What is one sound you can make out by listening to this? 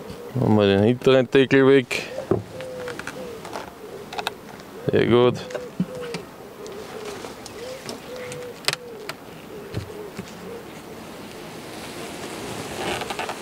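A wooden hive lid scrapes and knocks as it is lifted.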